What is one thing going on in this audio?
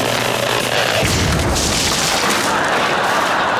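A giant tomato bursts with a loud wet splat.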